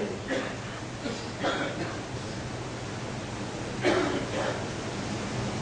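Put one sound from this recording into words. A man speaks slowly and solemnly into a microphone, with long pauses.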